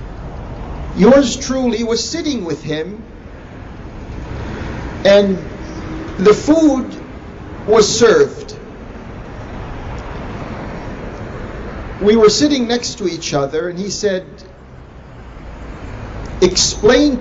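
A man speaks slowly and calmly into a microphone, with long pauses.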